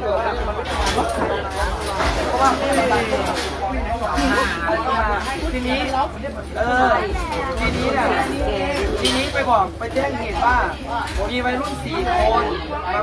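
A crowd of children and young people chatter and call out close by, outdoors.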